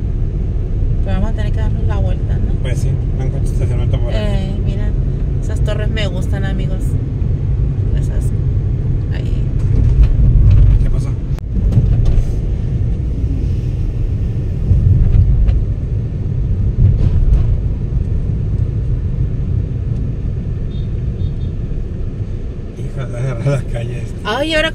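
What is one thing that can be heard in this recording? A car engine hums and tyres roll steadily on the road.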